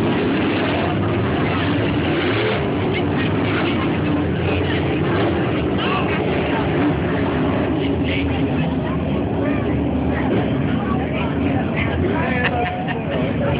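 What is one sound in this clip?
Race car engines roar loudly outdoors as cars speed around a track.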